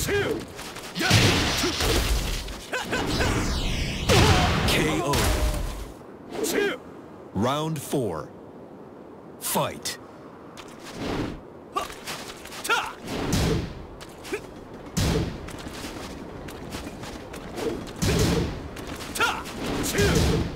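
Punches and kicks land with heavy, sharp thuds.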